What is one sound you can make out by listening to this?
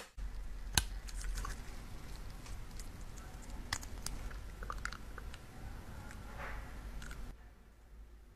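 Small plastic parts click and tap as they are handled.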